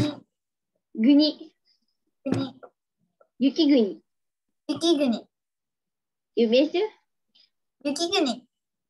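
A young girl speaks in short, lively phrases over an online call.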